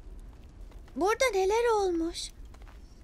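A young girl cries out in distress.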